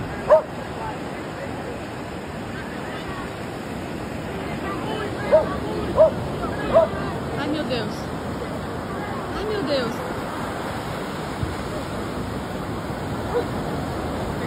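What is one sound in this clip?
A dog barks a few times.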